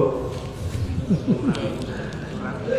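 A young man laughs briefly.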